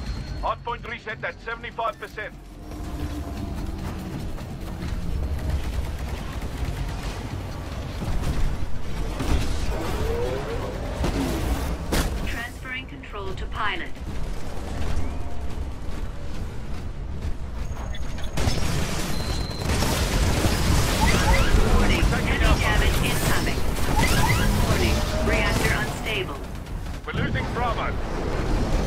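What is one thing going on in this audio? Gunfire and explosions boom and rattle throughout.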